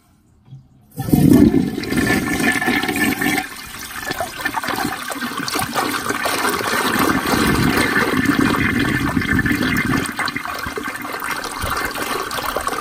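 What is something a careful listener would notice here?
Water rushes loudly into a toilet bowl with a fresh flush.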